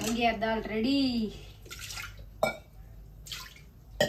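A metal lid clinks against a pot.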